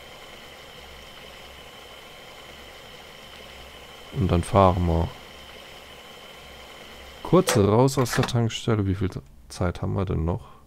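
A truck engine idles with a low, steady hum.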